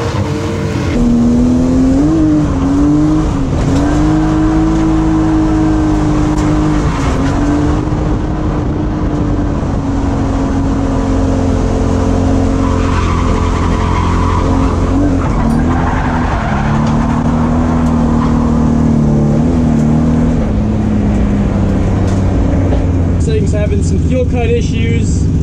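A car engine roars and revs up and down loudly from inside the car.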